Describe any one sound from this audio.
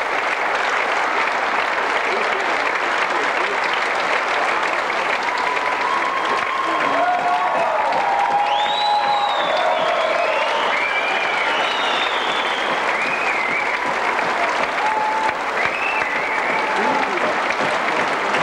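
A large crowd claps steadily in a big echoing hall.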